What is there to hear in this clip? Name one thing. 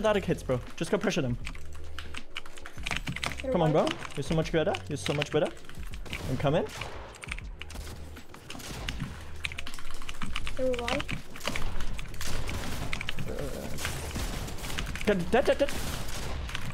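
Keys on a keyboard click rapidly.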